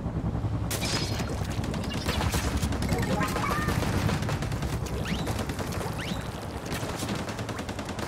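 Wet ink splats and squelches in short bursts.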